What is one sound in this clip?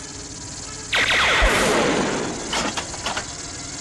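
A loud blast bursts through metal and rumbles away.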